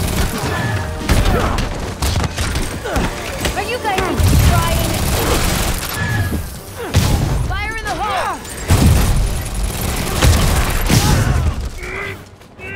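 Heavy punches and kicks land with dull thuds.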